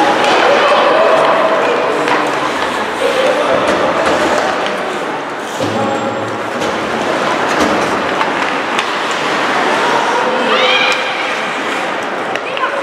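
Young players shout and call out across the rink.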